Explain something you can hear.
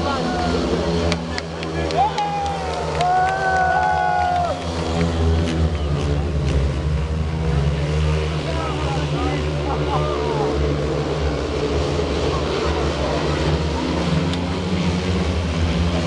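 Motorcycle engines roar and whine as the bikes race around a track.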